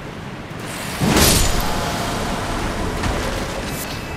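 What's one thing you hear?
A bright magical burst rings out and fades.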